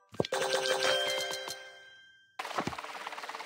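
A bright chiming jingle rings out and fades away.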